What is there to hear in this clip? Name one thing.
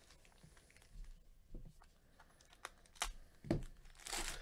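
A plastic wrapper crinkles as it is handled.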